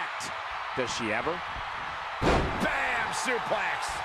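A body slams hard onto a wrestling ring mat with a thud.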